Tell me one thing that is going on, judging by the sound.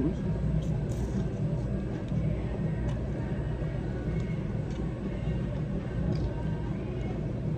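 A young man chews food with crunchy, wet sounds.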